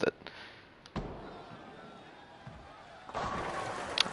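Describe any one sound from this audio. A bowling ball rumbles down a wooden lane.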